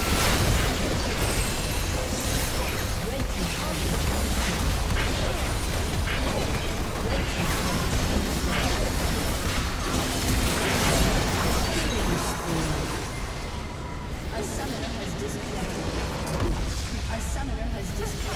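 Spell effects crackle and burst in a busy game battle.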